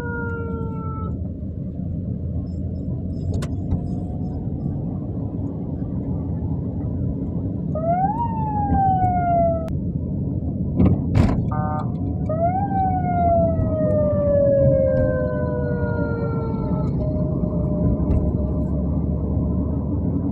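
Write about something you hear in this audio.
Car engines and tyres rumble steadily along a busy street.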